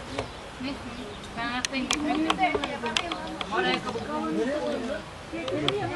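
Adult men and women talk together outdoors.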